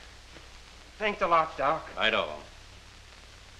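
A man speaks warmly and cheerfully.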